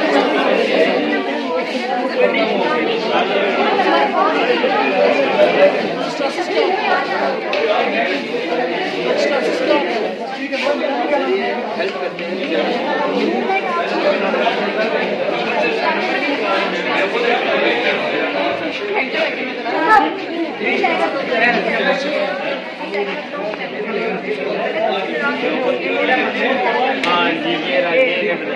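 A man explains calmly and steadily to a small group close by.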